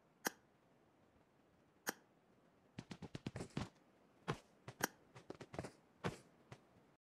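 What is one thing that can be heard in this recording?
Short clicking taps sound in quick irregular bursts.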